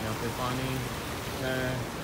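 Water trickles over rocks in a shallow stream.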